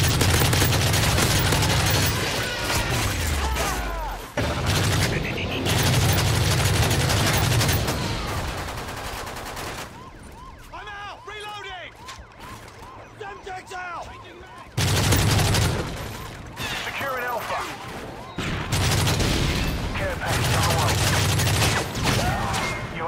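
An automatic rifle fires in a video game.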